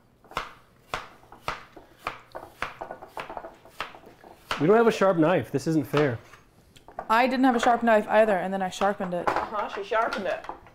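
A knife chops on a cutting board in quick, regular taps.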